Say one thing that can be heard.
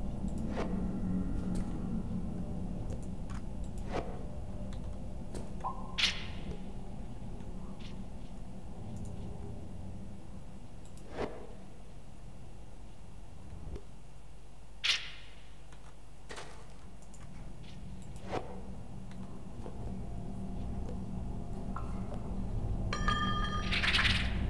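Short electronic chimes sound as a mining tool breaks blocks.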